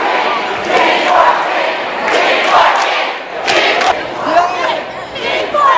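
A large crowd cheers and shouts loudly in an echoing hall.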